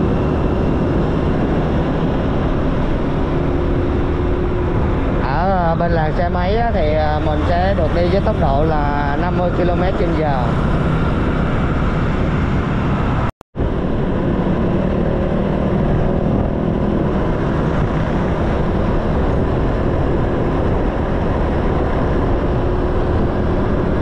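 A scooter engine hums steadily while riding.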